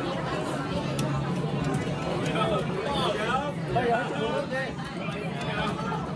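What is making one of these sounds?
Game music plays from an arcade cabinet.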